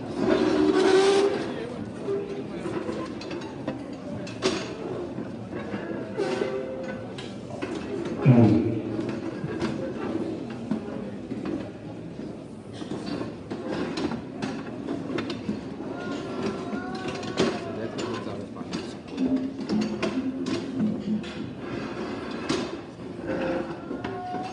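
A crowd of men and women pray and call out loudly.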